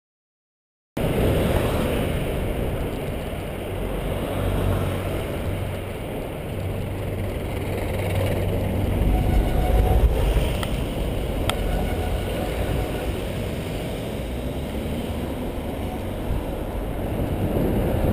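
Wind rushes loudly past.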